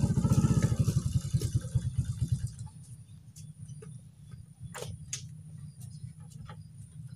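A motorcycle engine putters close by, revving loudly at first and then settling to a quieter idle.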